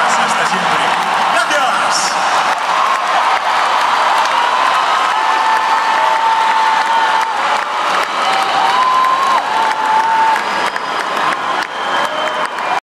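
A band plays loudly live in a large echoing hall.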